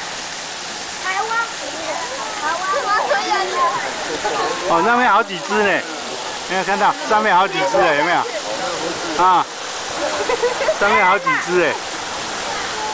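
A young child babbles and calls out excitedly.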